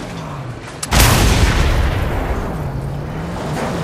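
A loud explosion booms.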